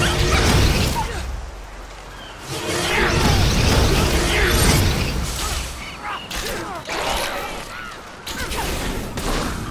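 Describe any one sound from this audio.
Game spells whoosh and crackle during a fight.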